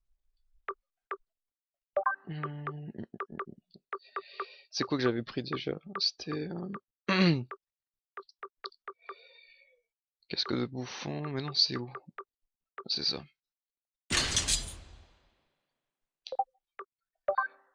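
Short electronic menu blips sound as selections change.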